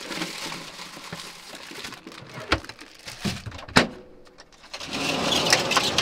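A plastic bag crinkles in a man's hands.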